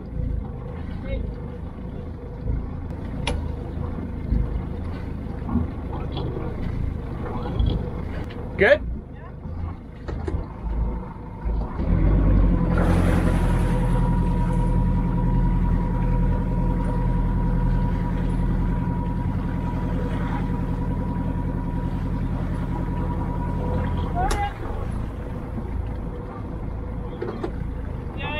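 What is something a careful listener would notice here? Water laps softly against a boat's hull.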